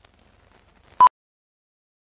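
A short, sharp electronic beep sounds once.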